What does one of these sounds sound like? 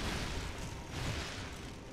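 Fire crackles close by.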